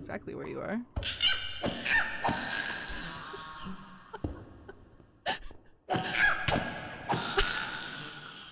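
A sword slashes and strikes a creature.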